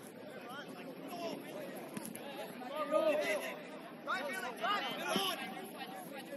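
Spectators on the sideline chatter and call out.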